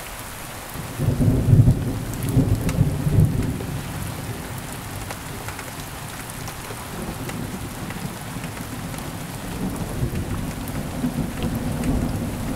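Thunder rumbles loudly and then rolls on in the distance.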